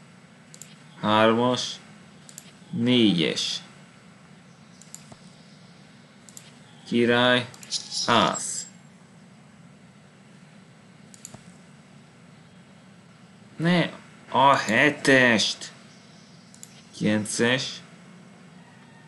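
A man speaks in short bursts through a microphone.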